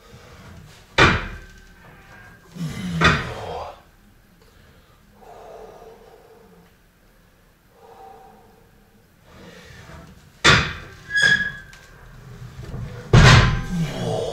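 A loaded barbell clanks heavily against metal hooks.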